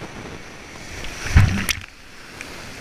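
Water crashes over the microphone in a sudden loud burst.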